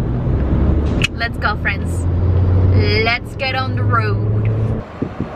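A young woman sings loudly along in a car.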